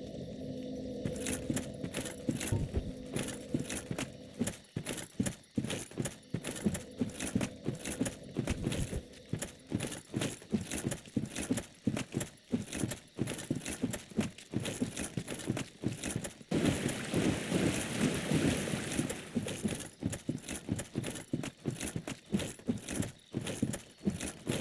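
Armoured footsteps run quickly over soft forest ground.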